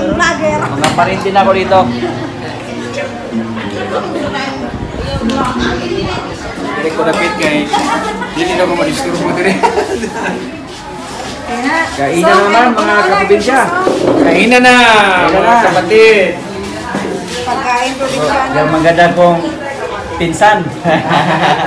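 Several people chatter in a small room.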